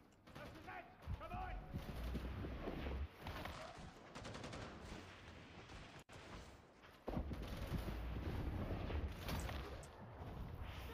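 Gunfire and explosions rumble in bursts.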